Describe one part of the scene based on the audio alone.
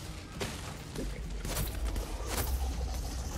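A fiery blast bursts with a deep rumble.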